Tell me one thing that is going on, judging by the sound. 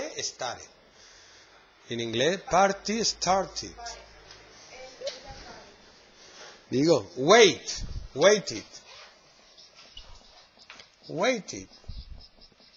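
A man speaks clearly and slowly, as if teaching, close by.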